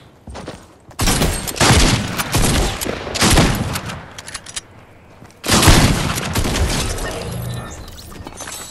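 Gunfire cracks in rapid, loud bursts.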